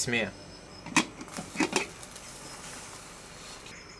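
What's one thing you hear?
A metal pot lid clanks as it is lifted off.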